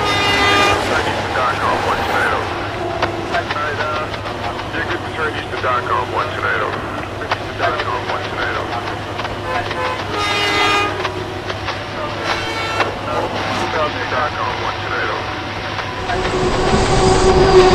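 A train rolls past with a steady rumble and clatter.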